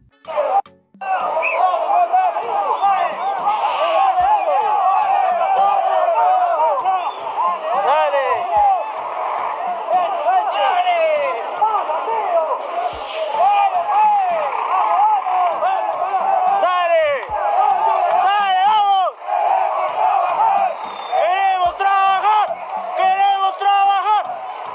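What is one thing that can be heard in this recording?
A crowd of men shouts and chants loudly outdoors, close by.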